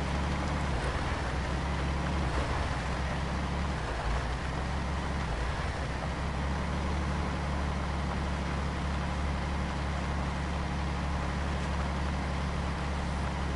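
Tyres crunch over a rough dirt road.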